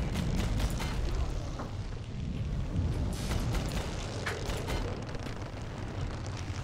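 A small submarine's engine rumbles low and steady underwater.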